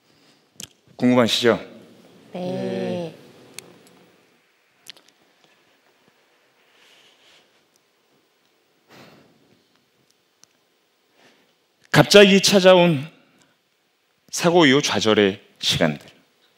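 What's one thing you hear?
A young man speaks with animation into a headset microphone, in bursts with long pauses.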